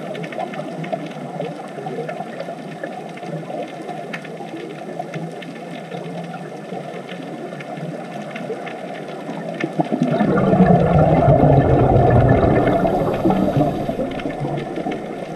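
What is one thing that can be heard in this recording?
Scuba divers' exhaled air bubbles gurgle and rumble underwater.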